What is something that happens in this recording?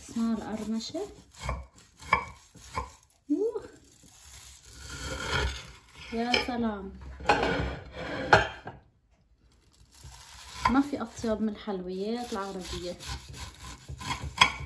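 A knife crunches through crisp pastry.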